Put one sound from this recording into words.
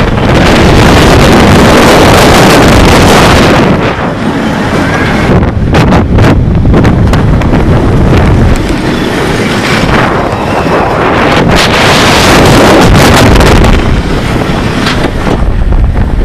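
Wind roars loudly past a fast-moving ride.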